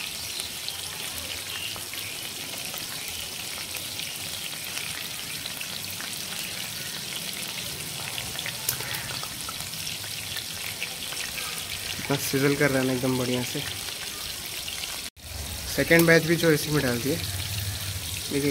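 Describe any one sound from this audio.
Flames crackle under the pan.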